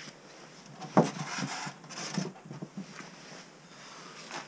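Hands knock and rattle against a plastic tub close by.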